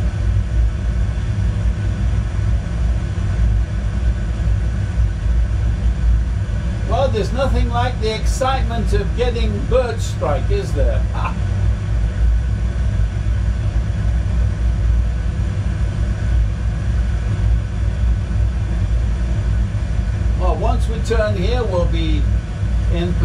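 A steady low jet engine rumble drones.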